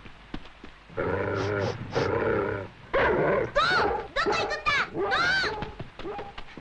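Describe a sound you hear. A boy calls out loudly.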